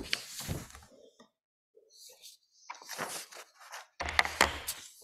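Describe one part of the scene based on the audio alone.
Paper rustles as pages are turned.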